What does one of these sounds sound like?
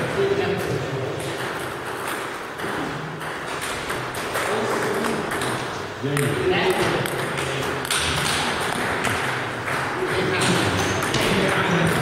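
A table tennis ball clicks against paddles and bounces on a table in an echoing hall.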